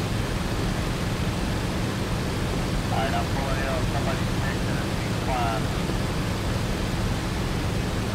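A propeller plane's engine drones steadily.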